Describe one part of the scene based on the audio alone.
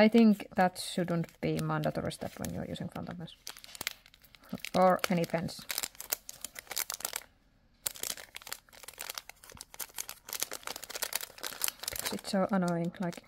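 Paper crinkles and rustles as it is handled.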